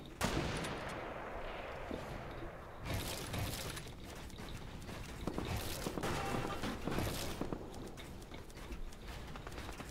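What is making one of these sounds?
Wooden walls and ramps are built with quick clacking thuds.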